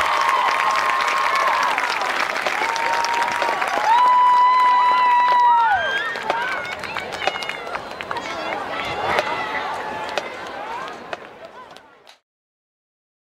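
A marching band plays loudly outdoors, with brass holding long notes.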